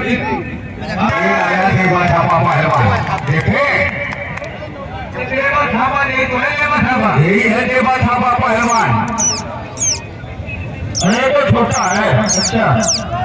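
A man speaks loudly and with animation close by.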